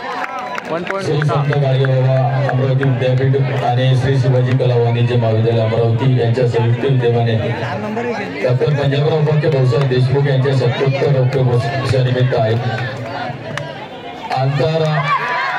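A player chants continuously during a raid.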